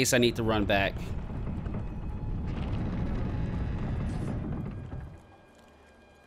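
A wooden door slides open with a low rumble.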